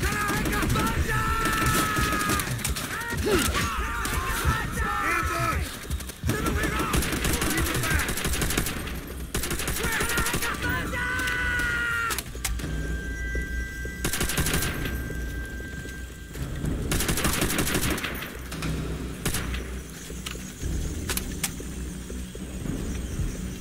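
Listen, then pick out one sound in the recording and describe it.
Rifles fire in rapid bursts close by.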